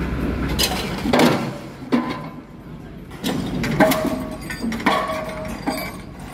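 A pile driver hammer pounds with heavy thuds.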